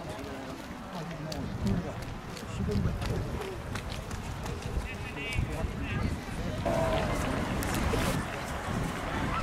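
People talk and call out in the distance.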